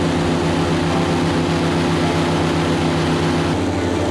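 Water sprays and rushes behind a fast boat.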